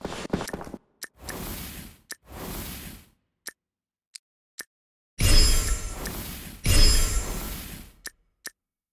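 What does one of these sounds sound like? Short electronic clicks chime.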